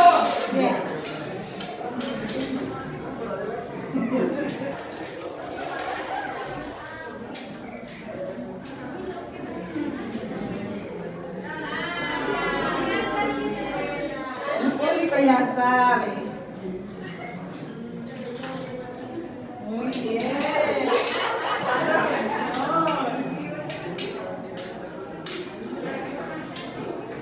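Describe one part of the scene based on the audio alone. A crowd of people chatters in a large echoing room.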